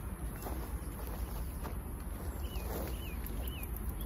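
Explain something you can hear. A bicycle rattles and clicks as it is handled.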